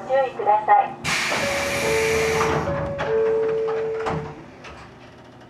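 A train door's air release hisses loudly.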